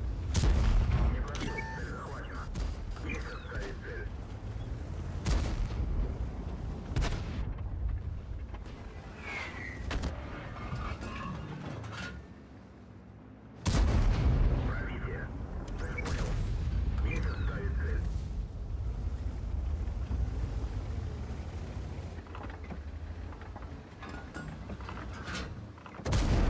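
A tank engine rumbles low and steady.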